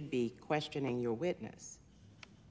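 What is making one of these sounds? A woman speaks firmly into a microphone.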